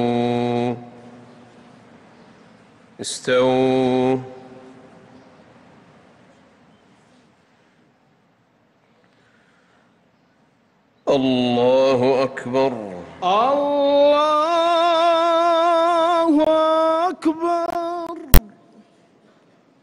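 A man chants slowly and melodically through a microphone, echoing in a large hall.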